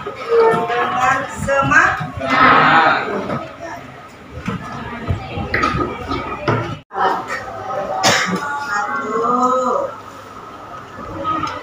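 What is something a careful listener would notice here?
A woman speaks calmly in front of a class.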